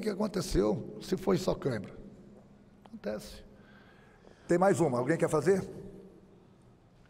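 A middle-aged man speaks with animation into a microphone, in bursts with pauses.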